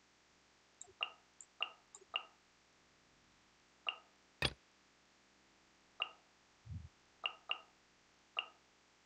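Short, soft interface chimes sound as menu choices are made, one after another.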